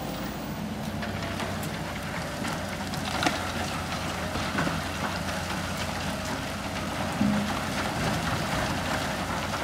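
Rocks and soil clatter into a truck bed.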